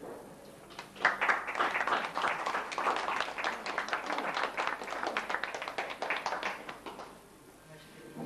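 A group of people claps their hands in a lively burst.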